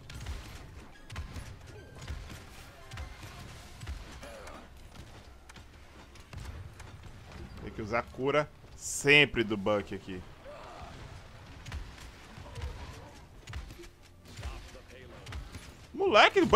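Gunshots fire in quick bursts from a video game.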